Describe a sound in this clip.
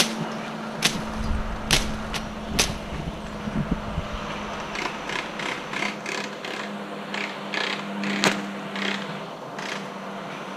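Leaves and stems rustle and crackle close by.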